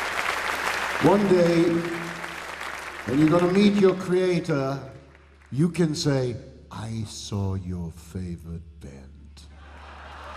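A man speaks into a microphone with animation, heard through loudspeakers in a large hall.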